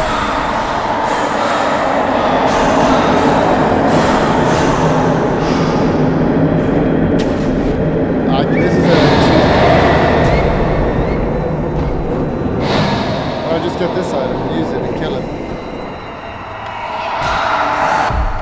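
Magical blasts whoosh and crackle in a video game.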